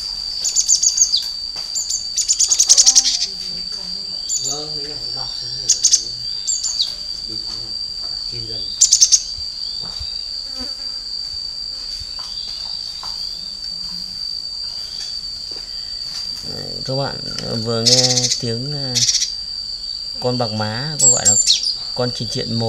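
Small birds chirp and tweet sharply close by.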